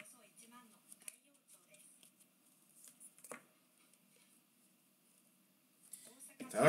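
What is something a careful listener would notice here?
Trading cards slide and flick against each other as they are shuffled.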